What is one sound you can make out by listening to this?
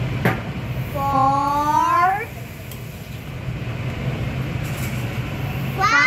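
A young child calls out close by in a rising voice.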